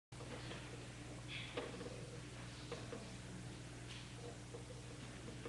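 An organ plays softly in a large echoing room.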